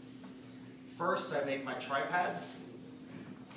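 A man speaks briefly nearby in an echoing room.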